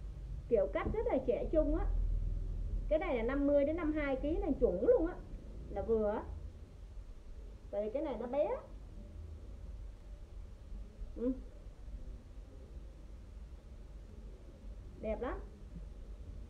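A woman talks with animation close to the microphone.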